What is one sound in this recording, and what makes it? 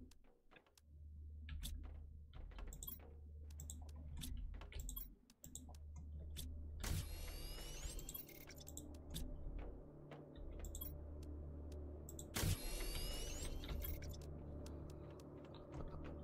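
Short game interface clicks and chimes sound now and then.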